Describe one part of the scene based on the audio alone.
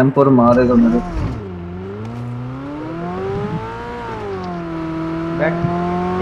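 A car engine starts and revs, then hums steadily as the car drives.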